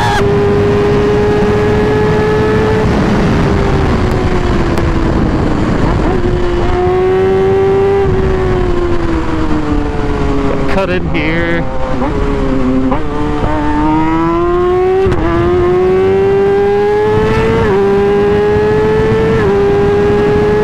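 A motorcycle engine hums close by, its pitch rising and falling through gear changes.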